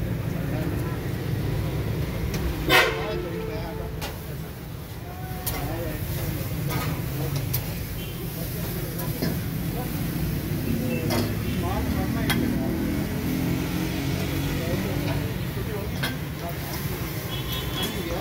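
A metal scraper clatters and scrapes on a hot griddle.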